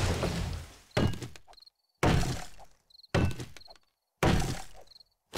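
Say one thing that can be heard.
An axe chops into a tree trunk with sharp, repeated knocks.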